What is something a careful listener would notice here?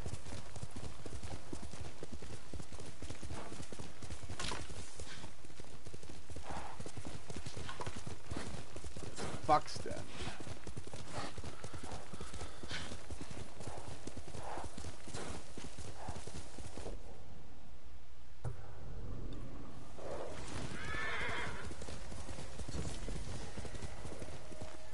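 A horse gallops with steady, quick hoofbeats.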